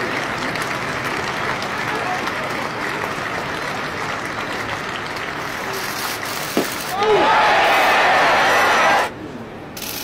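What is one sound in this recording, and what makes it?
A large crowd murmurs and chatters in an open stadium.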